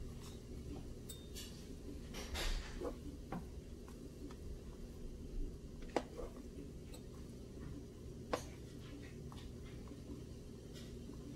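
Liquid bubbles and simmers in a pot.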